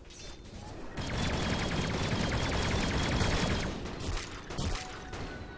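Swords clash and spells crackle rapidly in a game battle.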